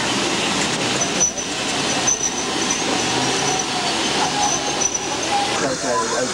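Train wheels squeal high on the rails.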